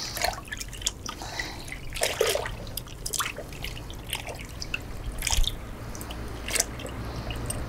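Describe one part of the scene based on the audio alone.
Liquid bubbles and simmers in a pot.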